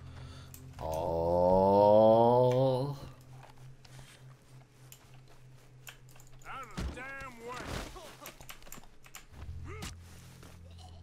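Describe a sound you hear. A man talks close to a microphone.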